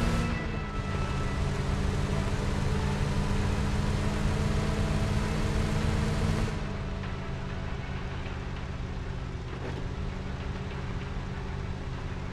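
A pickup truck engine hums steadily as it drives along a road.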